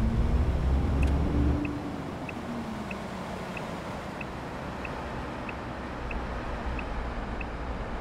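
A turn signal ticks at an even pace.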